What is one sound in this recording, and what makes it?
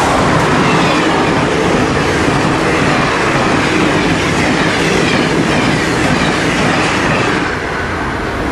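A passenger train rushes past close by with a loud roar of wheels on rails.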